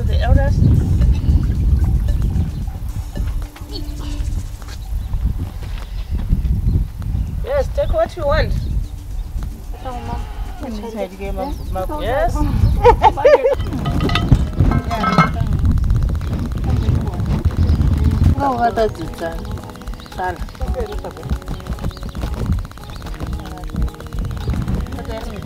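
Children and women talk nearby outdoors.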